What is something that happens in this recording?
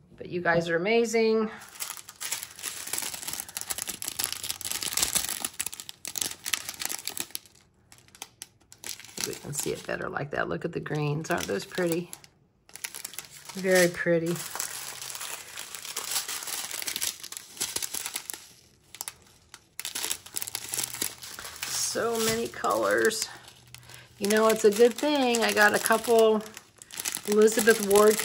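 Plastic bags crinkle and rustle as they are handled.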